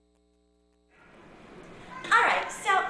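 A young woman talks loudly and excitedly.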